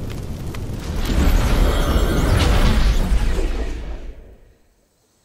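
A burst of flame roars loudly and dies away.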